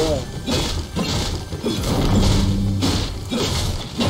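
A pickaxe strikes a wall with sharp knocks.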